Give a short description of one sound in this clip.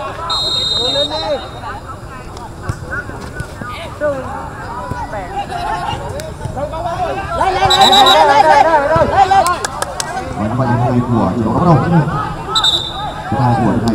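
A referee's whistle blows in short sharp blasts.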